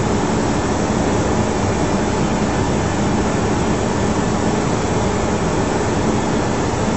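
A steady, loud roar of an airliner in flight.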